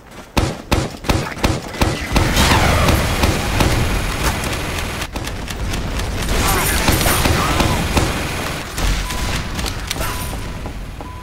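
Grenades explode with loud booms.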